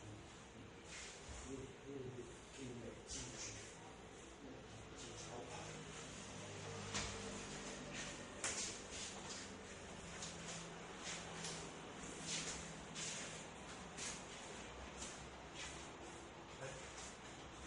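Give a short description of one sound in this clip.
Feet shuffle and squeak on a hard floor.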